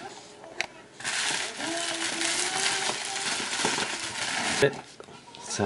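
A plastic bag rustles and crinkles as a hand rubs it.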